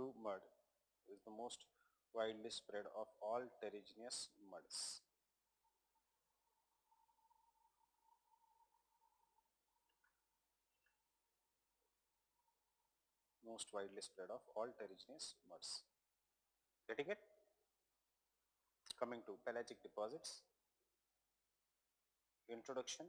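A man speaks calmly into a microphone, lecturing in short bursts with pauses.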